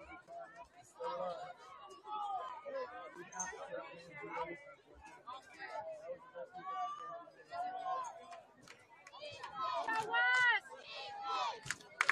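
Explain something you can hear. A crowd of spectators and players calls out and cheers outdoors.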